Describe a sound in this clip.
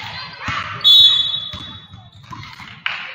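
A referee's whistle blows sharply in a large echoing gym.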